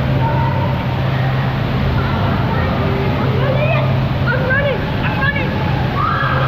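Water splashes and churns steadily in an echoing indoor pool.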